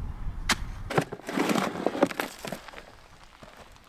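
A shovel scrapes and digs into soil.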